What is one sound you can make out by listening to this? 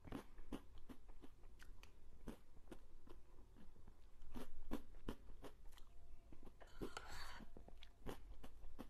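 A young woman eats soft cream close to a microphone, with wet smacking and squelching sounds.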